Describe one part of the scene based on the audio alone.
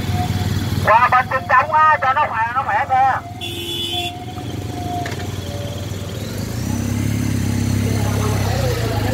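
A motorcycle engine idles nearby, then revs as the motorcycle pulls away.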